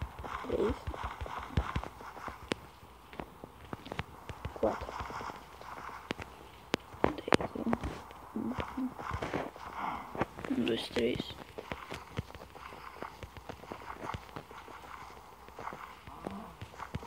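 A boy talks casually, close to the microphone.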